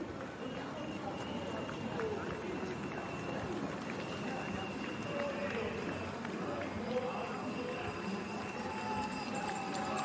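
Runners' feet patter on the road.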